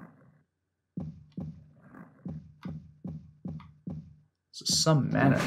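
Footsteps thud steadily on stairs.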